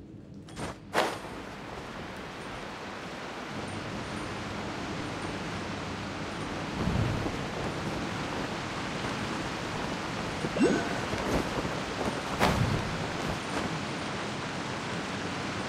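Wind rushes steadily while a character glides through the air.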